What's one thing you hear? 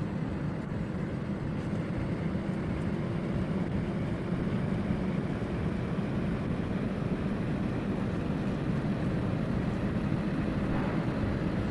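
A heavy vehicle engine rumbles steadily while driving.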